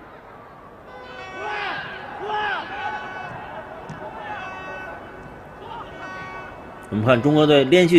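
A stadium crowd chants and cheers in a large open space.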